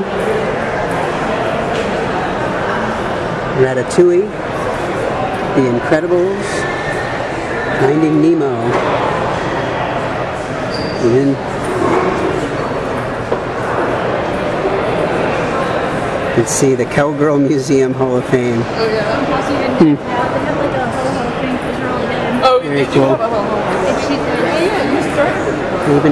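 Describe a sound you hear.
A crowd of people chatters in a large echoing hall.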